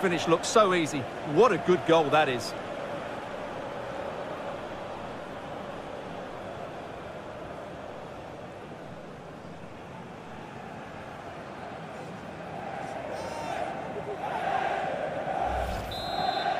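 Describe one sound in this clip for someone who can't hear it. A large crowd roars steadily, swelling into loud cheers toward the end.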